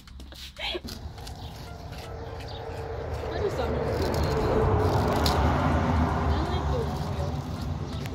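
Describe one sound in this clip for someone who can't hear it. Cabbage leaves rustle and tear in a woman's hands.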